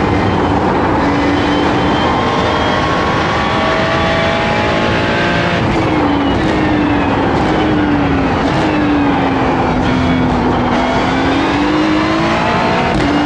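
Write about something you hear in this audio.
A racing car engine roars loudly, rising and falling in pitch as it changes gear.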